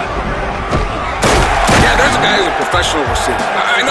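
Football players collide with a heavy thud.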